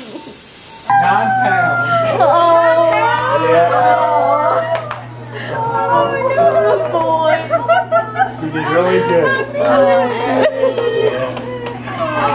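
Several women and men cheer and talk excitedly nearby.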